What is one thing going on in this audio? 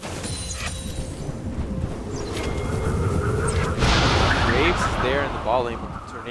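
Game characters clash in combat with spell and hit effects.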